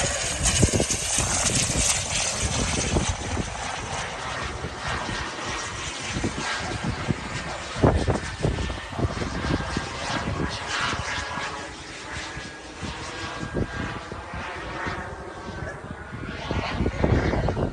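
A jet plane roars far off overhead.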